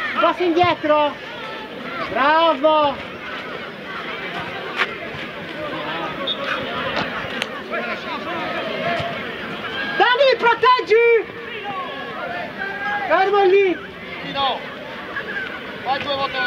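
A crowd of spectators chatters and calls out in the distance.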